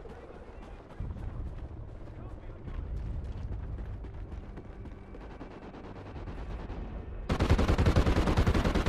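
A tank engine rumbles low and steady nearby.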